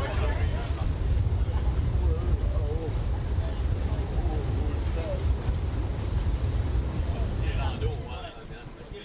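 A boat engine hums across open water.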